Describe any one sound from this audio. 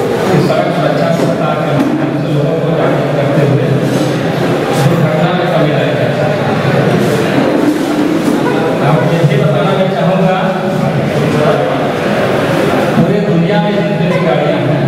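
A man speaks steadily into a microphone, close and amplified.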